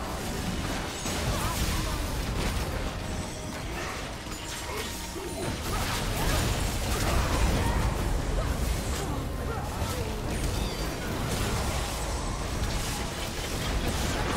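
Spell effects crackle and burst in quick succession.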